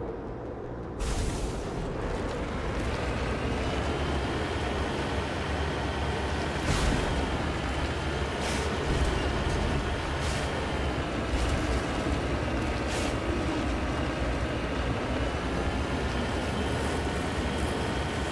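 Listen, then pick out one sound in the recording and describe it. A vehicle engine hums steadily as it drives over rough ground.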